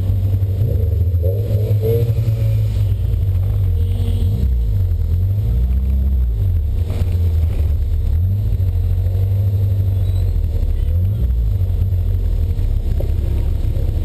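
A car engine hums steadily from inside the car, rising and falling in pitch as the car speeds up and slows.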